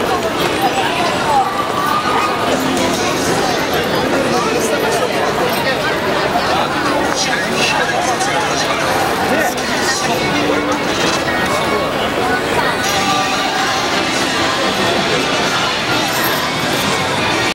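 A large crowd of people chatters all around outdoors.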